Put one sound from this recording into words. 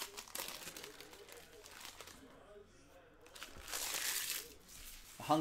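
Foil wrapping crinkles as it is torn open.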